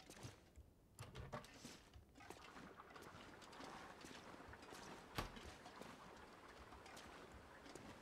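Footsteps thud on hard stairs.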